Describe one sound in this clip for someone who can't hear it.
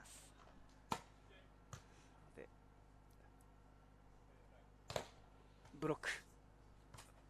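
A volleyball is struck with dull, sharp slaps.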